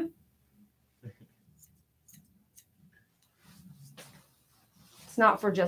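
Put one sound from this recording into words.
Scissors snip through fur.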